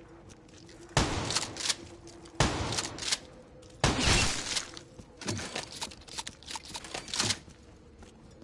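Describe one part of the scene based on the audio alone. Gunfire rings out in short loud bursts.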